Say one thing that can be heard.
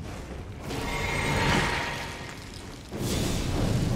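A magic spell crackles and shimmers with a bright sparkling hiss.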